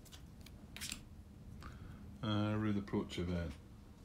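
A playing card is set down on a table with a soft tap.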